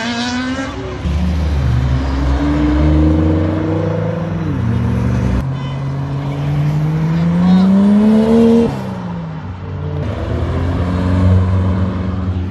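Car engines rumble deeply as they pull past.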